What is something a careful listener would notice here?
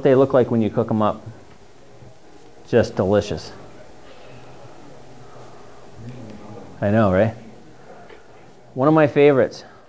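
A man speaks calmly in short bursts in a room.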